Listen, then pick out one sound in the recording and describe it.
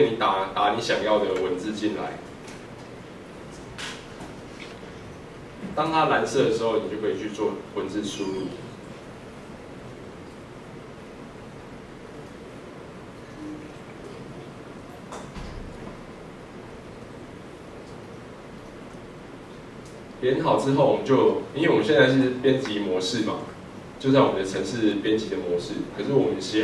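A young man speaks calmly through a microphone, pausing now and then.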